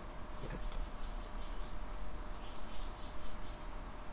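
Seeds patter lightly onto a plate of food.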